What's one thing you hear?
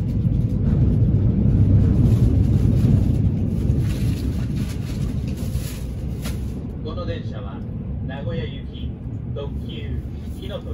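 A train rumbles steadily as it runs along the tracks.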